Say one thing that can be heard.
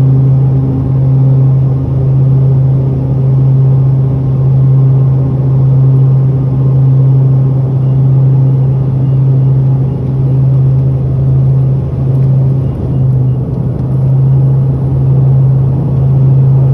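The turboprop engines of an airliner drone with a steady hum, heard from inside the cabin in flight.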